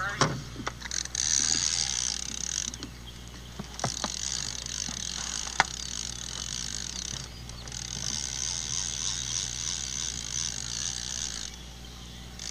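Water splashes against the side of a boat.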